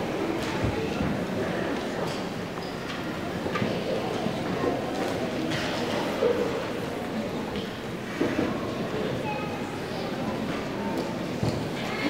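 Percussion strikes ring out over the band.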